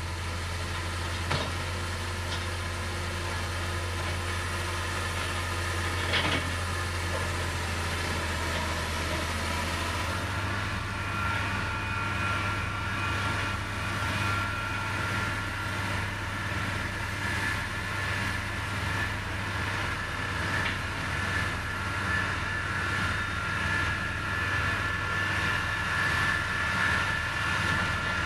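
A heavy diesel engine rumbles steadily nearby.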